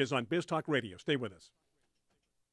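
A middle-aged man talks into a close microphone.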